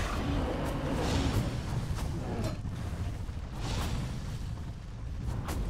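Game spells whoosh and crackle amid clashing combat sounds.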